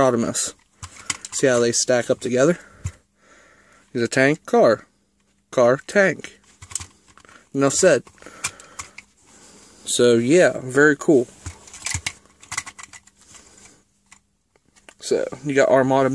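Plastic toy parts click and clatter as hands handle them.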